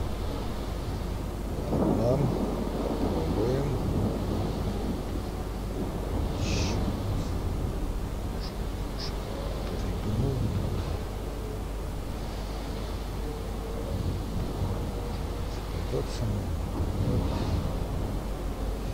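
A warship's engines rumble low and steadily over the sea.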